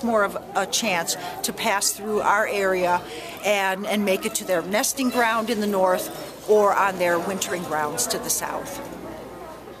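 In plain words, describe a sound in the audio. An elderly woman speaks calmly and close to a microphone.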